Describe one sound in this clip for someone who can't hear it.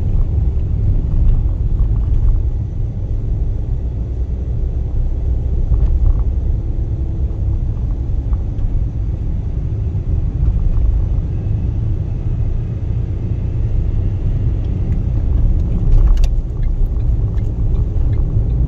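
A car drives along an asphalt road, its engine and tyres rumbling from inside the cabin.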